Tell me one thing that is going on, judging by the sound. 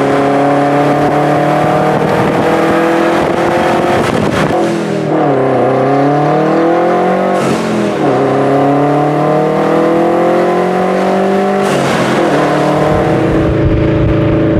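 A car engine revs hard, its pitch climbing and dropping with each gear change.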